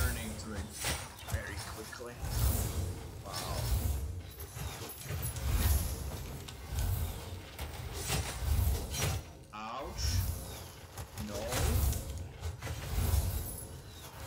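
Magic spells crackle and zap repeatedly in a fast fight.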